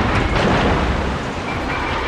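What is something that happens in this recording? A shell splashes heavily into water.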